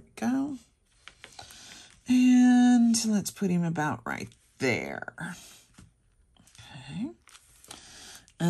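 Fingers press and rub a paper cutout onto a card with a soft rustle.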